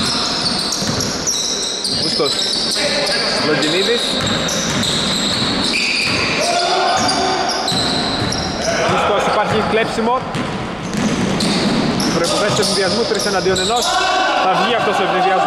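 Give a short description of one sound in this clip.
Sneakers squeak sharply on a hard court, again and again.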